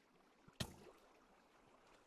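Water trickles softly.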